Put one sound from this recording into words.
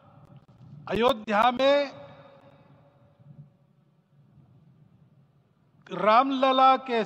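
An elderly man speaks slowly and firmly into a microphone, his voice carrying through loudspeakers outdoors.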